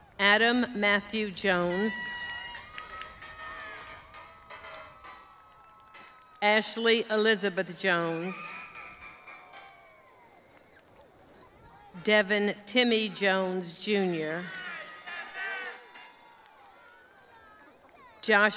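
A crowd cheers and whoops in the distance.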